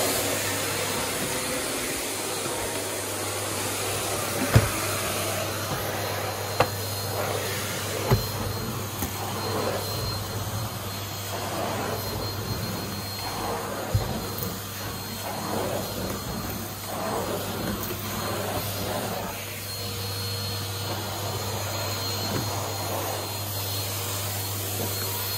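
A vacuum cleaner hums steadily and loudly.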